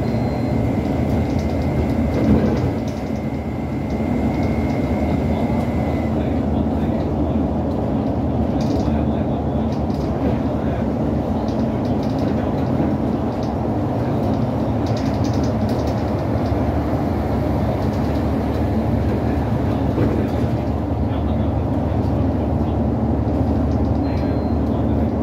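A bus engine hums and drones steadily from inside the cabin.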